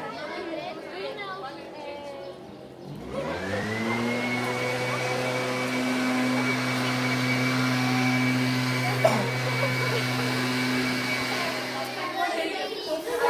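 Young girls talk and chatter close by outdoors.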